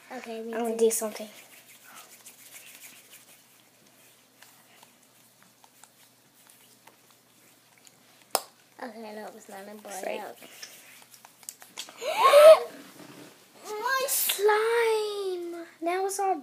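Young girls sing and talk close by.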